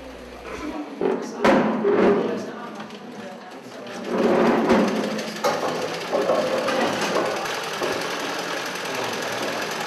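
A sewing machine whirs and clatters steadily.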